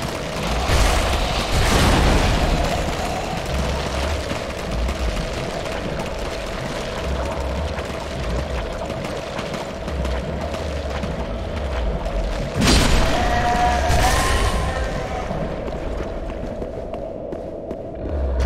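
Armoured footsteps crunch steadily over ground.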